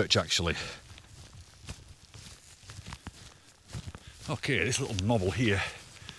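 Footsteps brush through grass.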